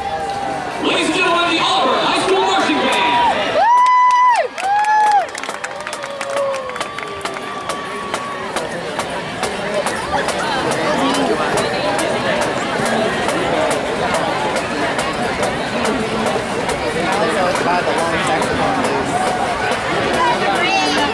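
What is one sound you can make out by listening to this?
A large crowd chatters and cheers outdoors.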